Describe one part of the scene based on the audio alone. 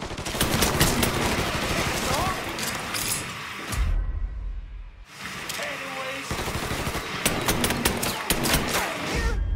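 A pistol fires sharp shots in quick bursts.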